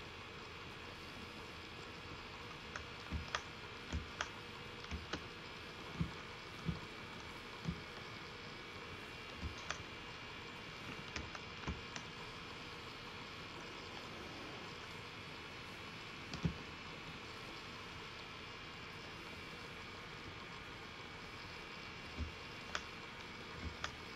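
Water rushes and splashes steadily against the bow of a moving boat.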